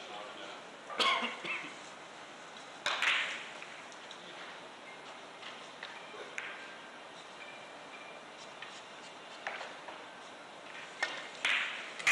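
A cue strikes a billiard ball with a tap.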